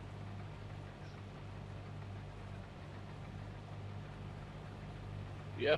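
A combine harvester engine hums steadily with a low drone.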